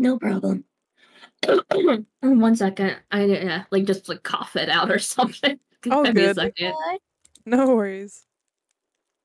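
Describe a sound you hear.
A young woman talks with animation into a microphone, close up.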